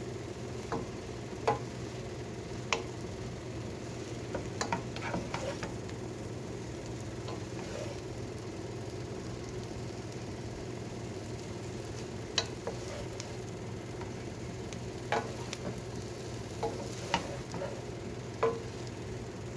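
Utensils scrape and clack against a metal pan while noodles are tossed.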